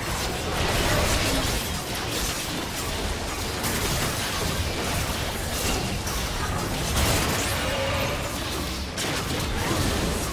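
Magic spells crackle and blast in a hectic video game battle.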